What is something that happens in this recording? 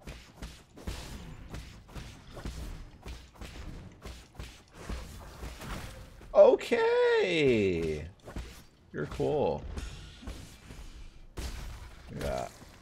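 Sword blows land with quick, sharp hits.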